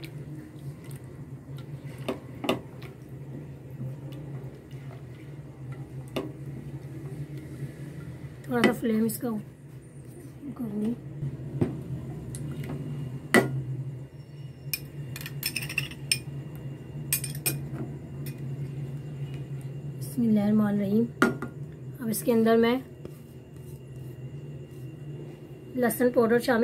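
Sauce bubbles and sizzles gently in a pan.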